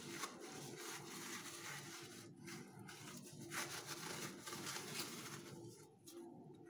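A paper towel rubs and squeaks against a plastic mould.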